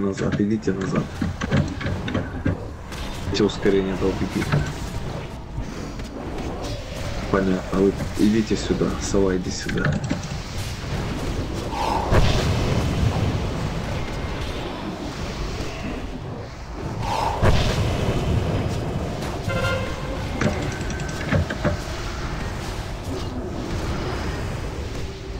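Magic spells whoosh and crackle in a fierce battle.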